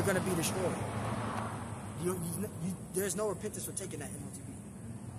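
A middle-aged man speaks casually, close by, outdoors.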